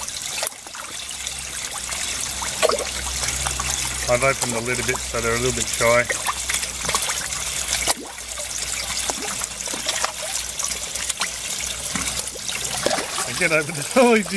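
Water pours and splashes steadily from a pipe into a tank.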